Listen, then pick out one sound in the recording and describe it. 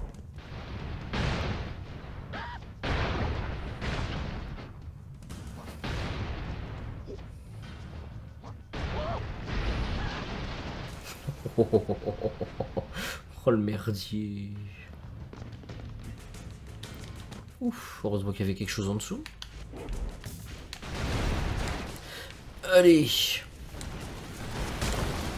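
Explosions boom and crackle in a video game.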